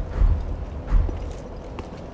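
Armoured footsteps thud on stone.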